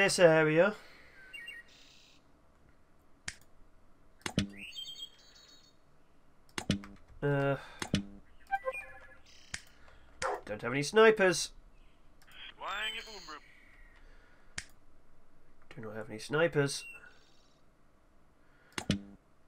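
Short game clicks sound as pieces are placed.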